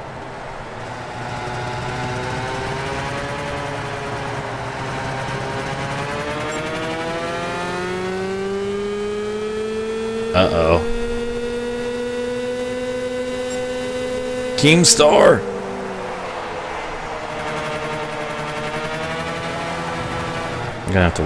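A kart engine buzzes and whines, rising and falling in pitch as it speeds up and slows down.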